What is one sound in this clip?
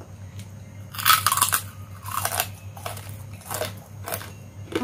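Crispy crackers crunch loudly as a woman bites them.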